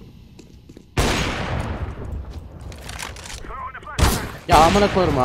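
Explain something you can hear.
A rifle shot cracks loudly.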